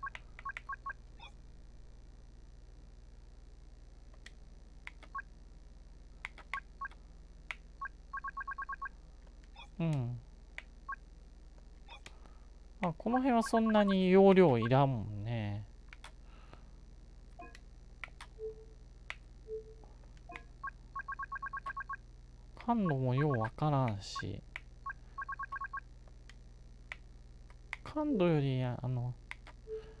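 Soft menu clicks tick again and again as a selection moves.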